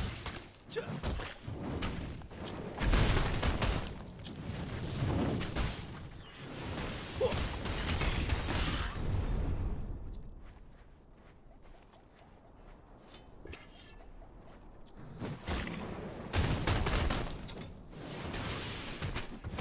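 Sword strikes and magic blasts hit giant scorpions.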